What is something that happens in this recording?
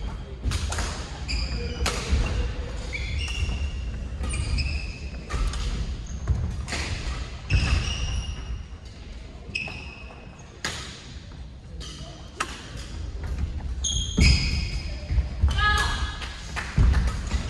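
Shuttlecocks are struck sharply with rackets, echoing in a large hall.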